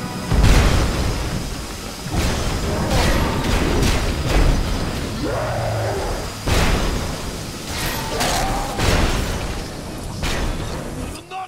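Heavy crashes and explosions bang out again and again.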